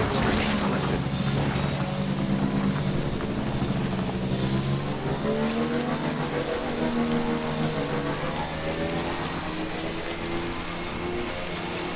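A motor vehicle engine hums and whines steadily as it drives over rough ground.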